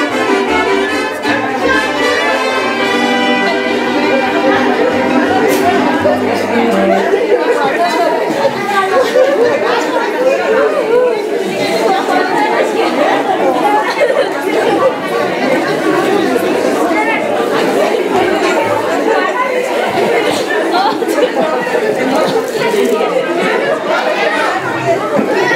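A crowd of women and men chatter and laugh all around, close by.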